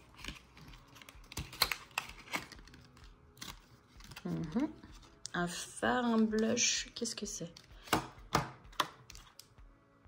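A small cardboard box scrapes and clicks close by.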